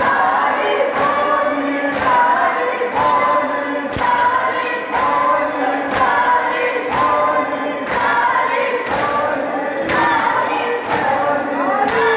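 A crowd of men chants loudly in unison.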